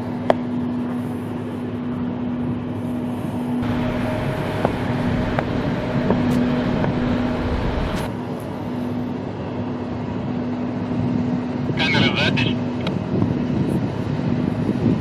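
A jet airliner's engines roar steadily as it rolls along a runway.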